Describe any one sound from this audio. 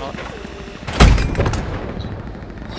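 A tank cannon fires with a loud, deep boom.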